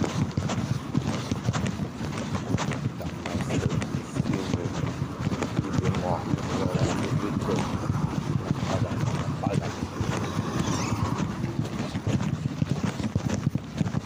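Wheels rumble and clatter over rough pavement.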